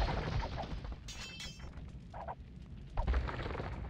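Soldiers clash in a battle with metallic clanks.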